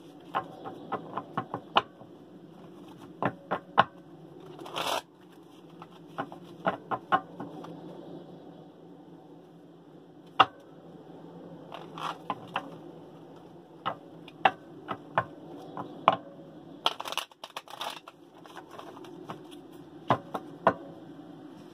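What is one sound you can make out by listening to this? Cards shuffle and tap in a young woman's hands.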